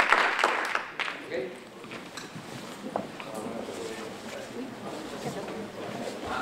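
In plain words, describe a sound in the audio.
People murmur and chatter quietly as a crowd gets up.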